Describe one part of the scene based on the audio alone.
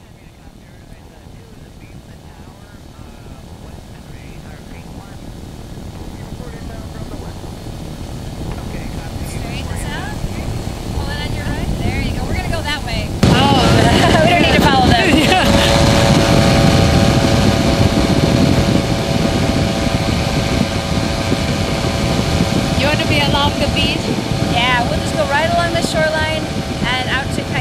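A small aircraft engine drones steadily with a propeller buzzing.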